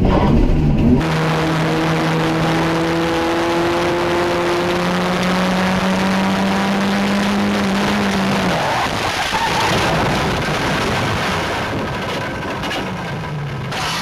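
A single-seater race car engine whines steadily and changes pitch.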